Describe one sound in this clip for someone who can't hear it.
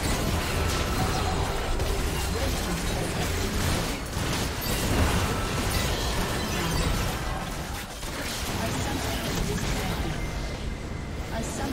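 Game spell effects crackle and blast in a busy fight.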